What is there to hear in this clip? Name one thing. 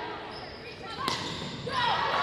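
A volleyball is struck hard with a sharp smack.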